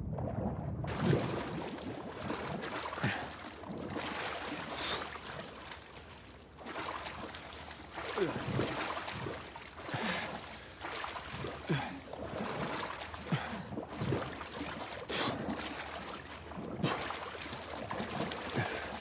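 A swimmer splashes through water with steady strokes.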